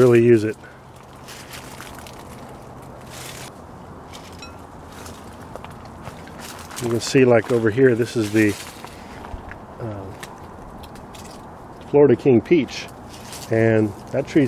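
Leaves rustle as a hand pulls at branches.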